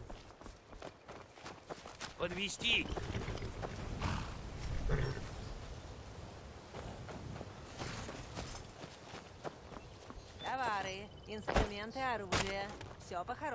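Footsteps crunch on dry leaves.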